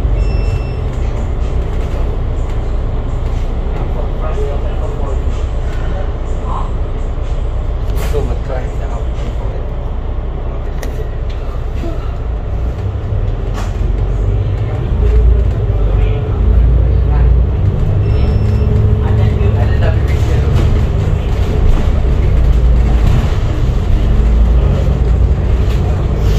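A bus engine rumbles steadily, louder as it pulls away.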